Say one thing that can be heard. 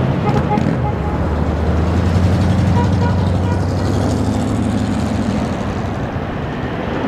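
A small bus engine idles and hums nearby.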